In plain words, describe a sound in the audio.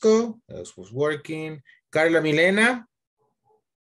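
An adult speaks calmly through an online call.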